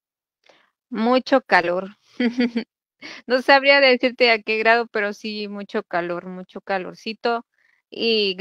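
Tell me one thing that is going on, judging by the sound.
A woman talks over an online call.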